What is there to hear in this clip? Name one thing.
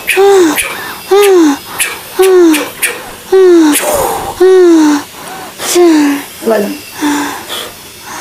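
A woman cries out loudly again and again, close by.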